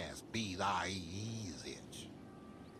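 A young man shouts angrily up close.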